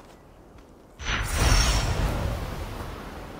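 A sudden loud whoosh bursts out.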